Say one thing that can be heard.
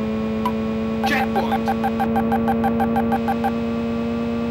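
Electronic beeps chirp rapidly as a car passes a checkpoint.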